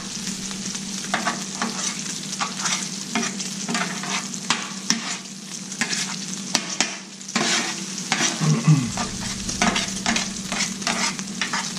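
A metal spatula scrapes and taps against the griddle.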